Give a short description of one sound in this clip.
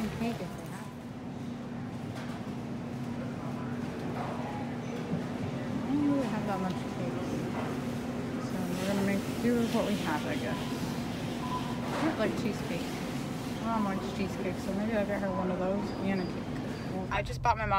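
A refrigerated display case hums steadily.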